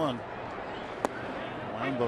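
A baseball pops into a catcher's leather mitt.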